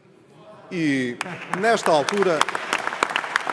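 A man speaks firmly into a microphone.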